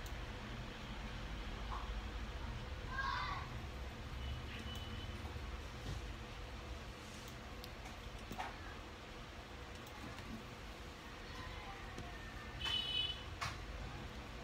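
Plastic toy bricks click and snap together.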